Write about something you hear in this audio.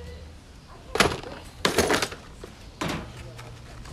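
Wooden boards knock and clatter together.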